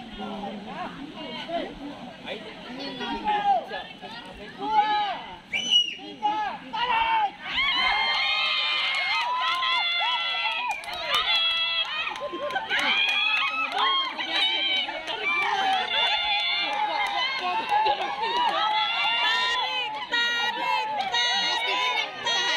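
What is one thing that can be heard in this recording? A crowd of young women and girls shouts and cheers loudly outdoors.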